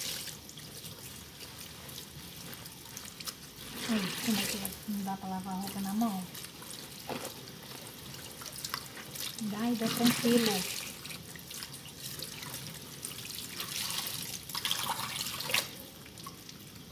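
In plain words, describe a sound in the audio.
Wet cloth sloshes and squelches as it is scrubbed by hand.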